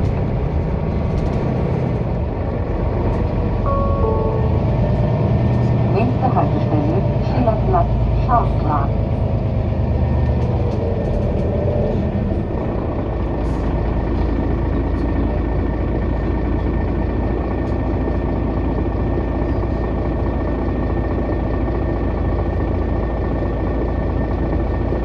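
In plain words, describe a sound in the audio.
A vehicle rolls steadily along a street with a low rumble.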